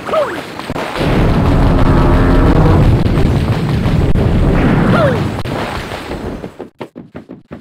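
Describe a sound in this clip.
A large heavy door rumbles open.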